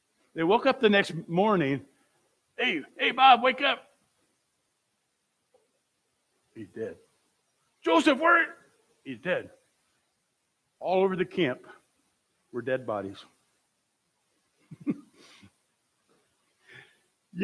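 An elderly man speaks with animation through a microphone, pausing between phrases.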